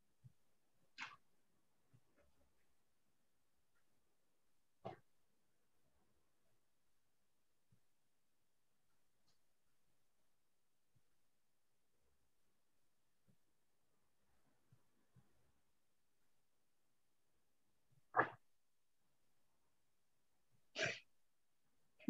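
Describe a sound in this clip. Fabric rustles softly in brief bursts.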